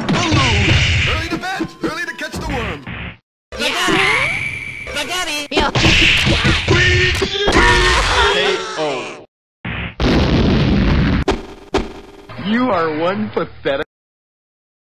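Cartoonish punches, thumps and blasts from a fighting game land in quick bursts.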